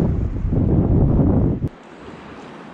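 Wind buffets outdoors.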